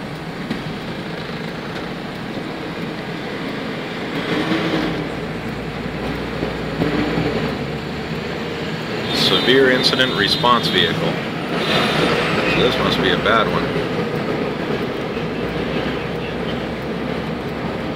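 A car rolls slowly along a road, heard from inside with a steady low rumble.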